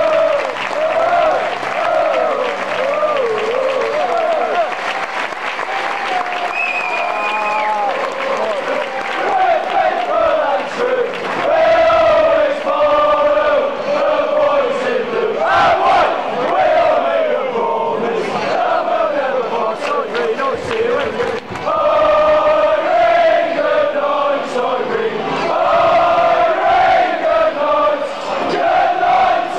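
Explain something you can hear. A large crowd of football fans sings loudly together in an open stadium.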